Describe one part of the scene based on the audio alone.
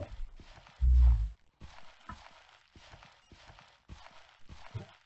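Footsteps crunch on dirt and grass in a game.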